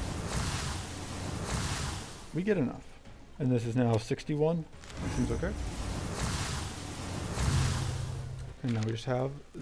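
Magic spells whoosh and shimmer.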